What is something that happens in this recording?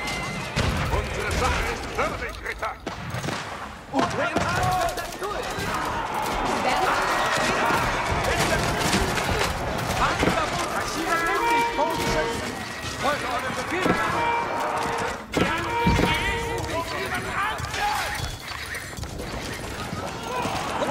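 Swords clash in a large battle.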